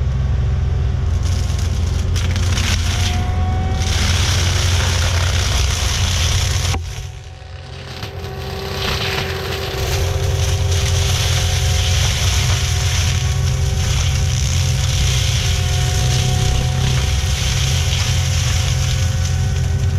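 A mulcher head grinds and shreds brush.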